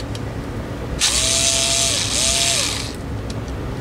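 A cordless drill whirs in short bursts.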